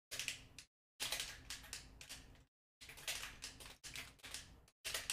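Punchy video game hit and swoosh effects play in quick bursts.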